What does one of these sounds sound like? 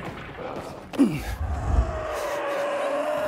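Feet land with a heavy thud after a jump.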